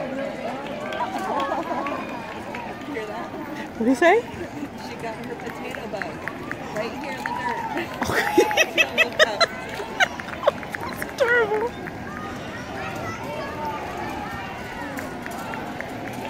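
A crowd of adults and children chatters outdoors nearby.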